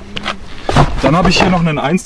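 Fireworks rattle and knock as a hand rummages through a cardboard box.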